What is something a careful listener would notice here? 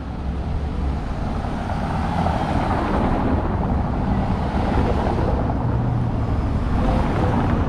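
A car drives past on cobblestones.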